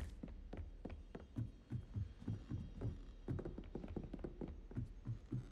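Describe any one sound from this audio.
Footsteps thud quickly on stone stairs.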